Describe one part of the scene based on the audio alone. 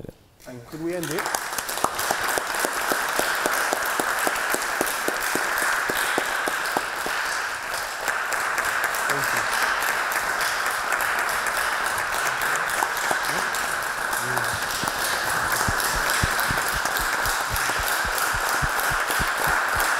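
An audience claps and applauds steadily.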